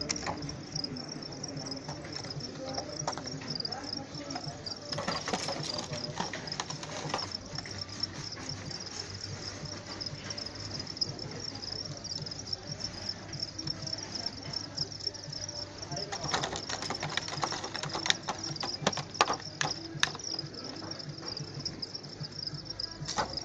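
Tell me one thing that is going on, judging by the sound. Crickets chirp steadily and shrilly close by.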